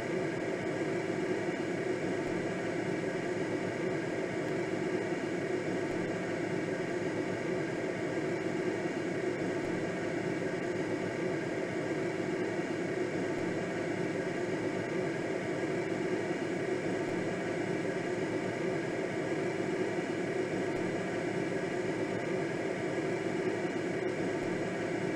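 Air rushes steadily past a gliding sailplane.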